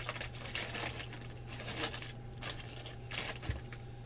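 A foil wrapper tears open.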